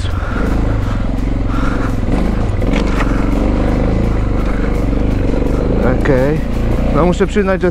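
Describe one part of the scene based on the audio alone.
A motorcycle engine rumbles and revs close by.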